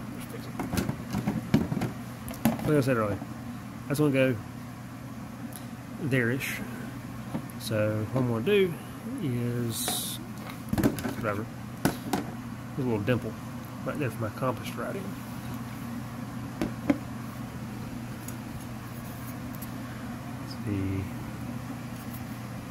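Plastic parts knock and clatter as they are handled.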